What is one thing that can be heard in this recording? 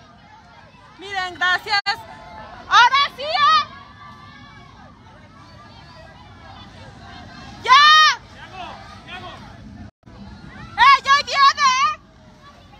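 Women shout loudly and excitedly nearby.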